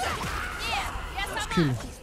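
Ice shatters with a crackle.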